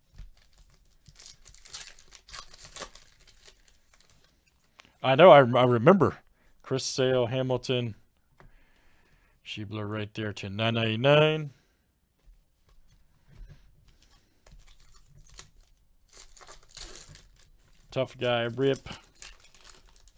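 Foil wrappers crinkle and tear open.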